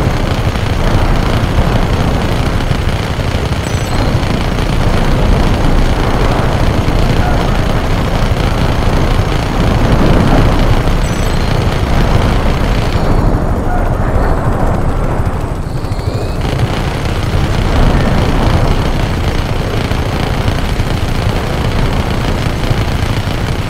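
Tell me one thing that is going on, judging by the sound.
A helicopter's rotor thumps and roars steadily.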